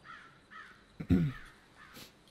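A man coughs.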